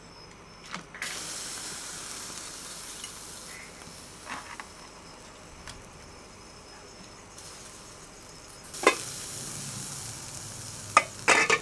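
Water boils and bubbles in a pot.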